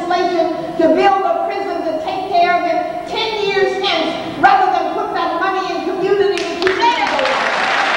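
An elderly woman speaks with animation through a microphone in a large echoing hall.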